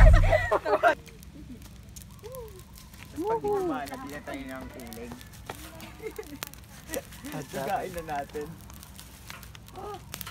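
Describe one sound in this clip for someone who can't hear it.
Leaves crackle faintly as they smoulder.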